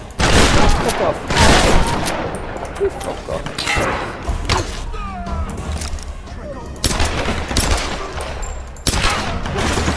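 Gunshots bang with sharp echoes.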